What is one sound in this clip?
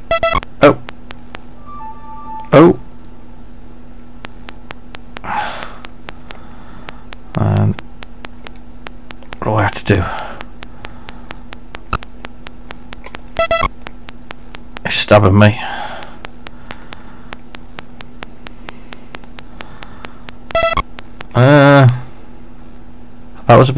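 Short electronic beeps and buzzing blasts sound in bursts.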